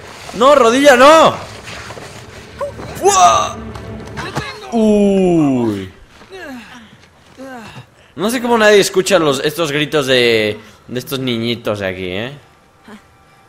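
A young man speaks excitedly, close to a microphone.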